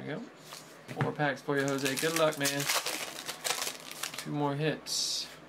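Foil wrappers crinkle and tear as packs are opened.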